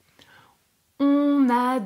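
A young woman speaks clearly and expressively into a close microphone.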